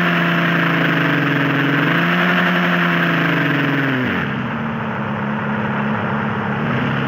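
Tyres roll on a road with a steady hiss.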